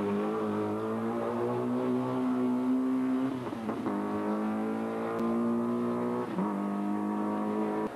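A rally car engine revs hard and shifts gears as the car races past.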